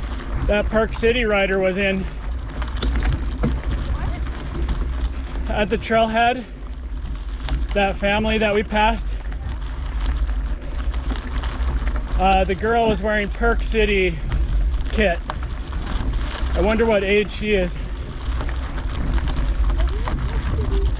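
Bicycle tyres crunch over a rough dirt trail.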